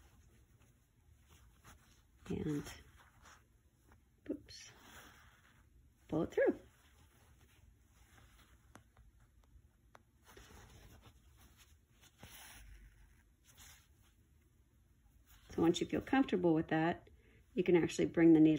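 Cloth rustles softly as fingers handle and smooth it.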